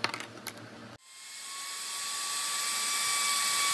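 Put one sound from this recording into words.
A trim router spins up to a high whine.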